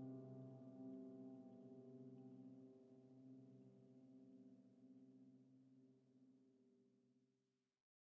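A synthesizer plays a low, sustained chord that slowly fades away.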